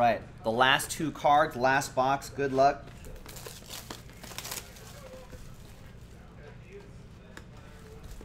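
A card box is handled and rustles.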